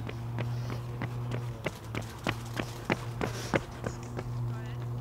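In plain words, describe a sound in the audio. Running footsteps pass close by on pavement.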